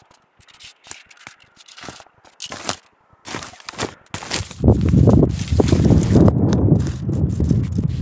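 Dry grass crunches underfoot with each step.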